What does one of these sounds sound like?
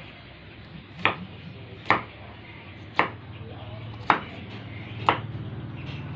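A knife chops sharply on a wooden board.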